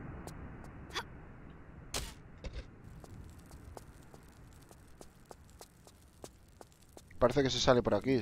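Quick footsteps tap on a hard tiled floor.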